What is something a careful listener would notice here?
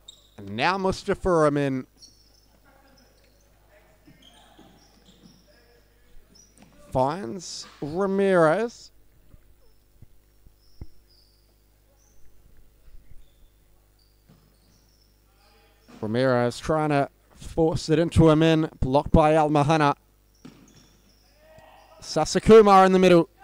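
A ball is kicked across a hard indoor court with dull thumps.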